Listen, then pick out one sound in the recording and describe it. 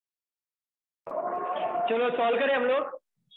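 A young man lectures.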